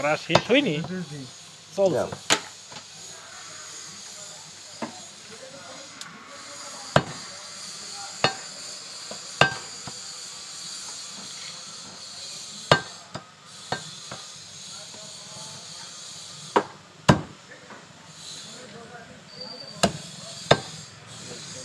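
A cleaver chops meat on a wooden block with sharp, irregular thuds.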